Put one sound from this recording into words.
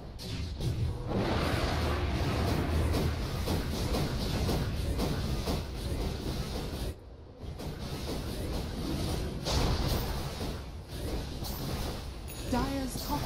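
Fiery spells crackle and explode during a fight.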